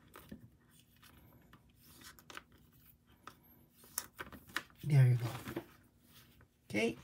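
Plastic binder sleeves rustle and crinkle as hands handle them.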